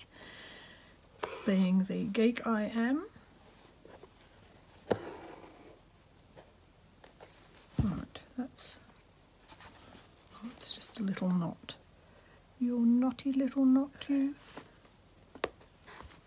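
Thread is pulled through fabric with a soft rasp.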